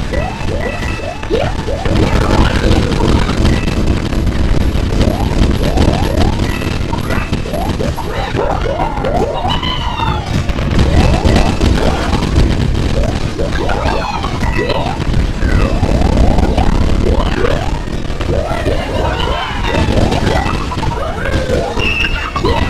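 Video game explosions boom and rumble.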